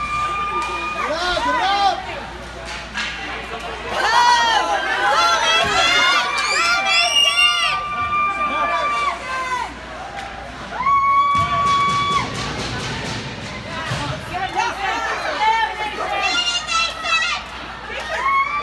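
Spectators and players shout and cheer.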